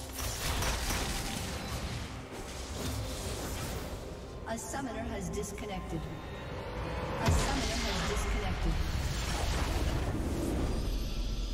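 Video game spells crackle and burst during a fight.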